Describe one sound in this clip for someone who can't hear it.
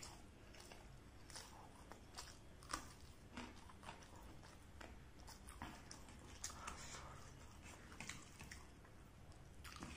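Fingers squish and scrape through rice on a plate.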